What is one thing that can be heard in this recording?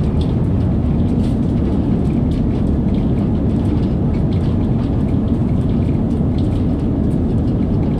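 A train rumbles fast through a tunnel with a steady low roar.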